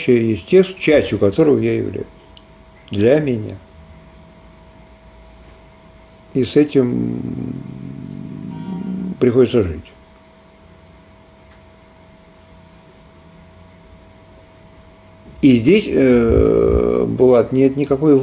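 A middle-aged man speaks calmly into a nearby microphone, in short bursts with pauses.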